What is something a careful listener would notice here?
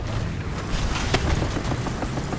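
A shell explodes with a loud boom in the distance.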